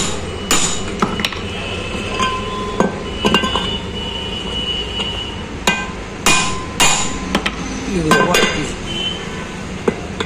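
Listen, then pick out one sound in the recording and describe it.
A metal bar taps and clinks against metal parts with sharp ringing knocks.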